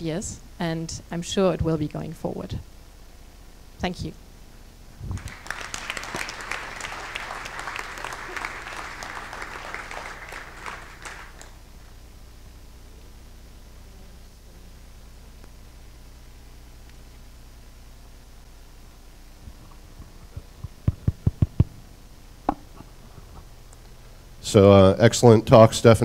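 A woman speaks through a microphone to an audience.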